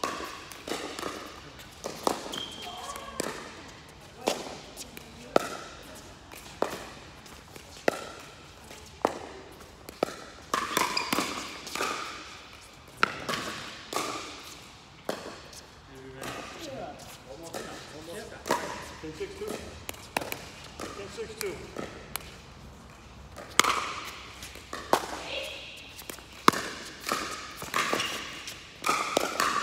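Paddles smack a plastic ball back and forth with sharp pops that echo in a large hall.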